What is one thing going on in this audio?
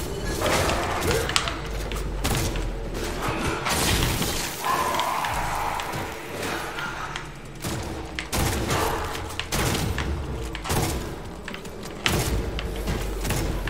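Gunfire bursts rapidly and loudly.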